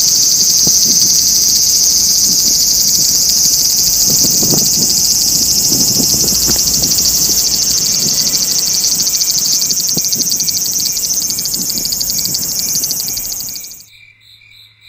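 Wind rustles through leaves outdoors.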